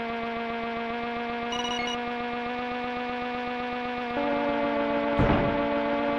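A video game kart engine buzzes steadily, its pitch shifting slightly.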